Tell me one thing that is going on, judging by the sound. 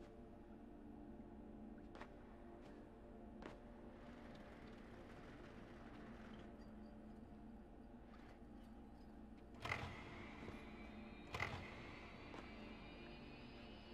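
Small footsteps patter on a hard floor.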